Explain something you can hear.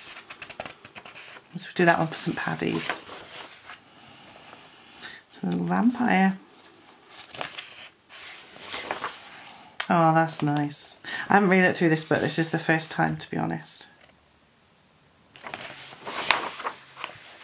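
Paper pages rustle and flip as a book's pages are turned.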